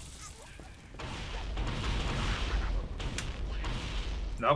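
A plasma blast explodes with a loud hissing roar.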